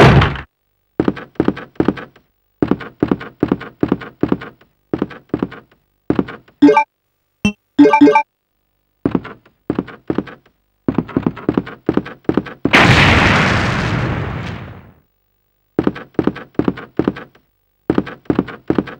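Footsteps thud quickly along a wooden floor.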